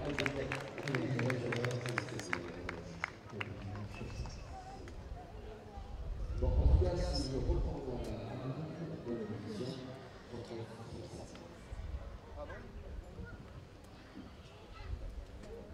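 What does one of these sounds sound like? A horse's hooves thud on grass as it canters.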